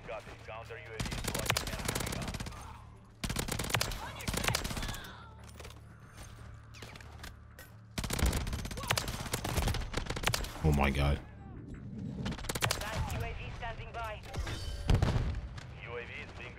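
Gunfire bursts rapidly in loud bursts.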